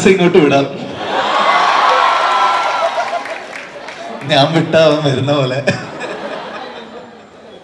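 A man and a woman laugh heartily.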